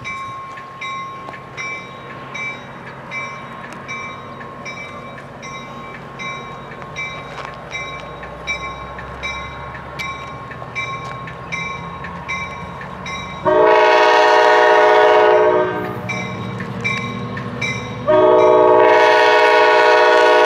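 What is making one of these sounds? A diesel locomotive rumbles as it approaches.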